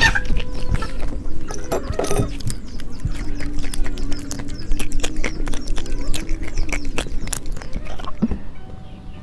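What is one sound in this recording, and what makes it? A young woman chews food with crunching bites.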